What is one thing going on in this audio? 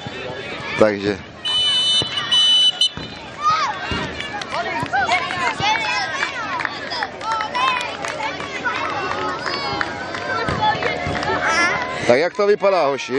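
Many children shout and chatter outdoors.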